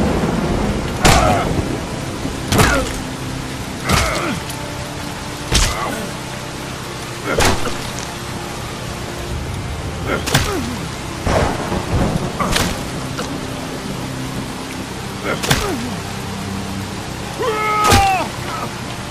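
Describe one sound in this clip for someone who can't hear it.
Fists punch a man's face with heavy thuds, again and again.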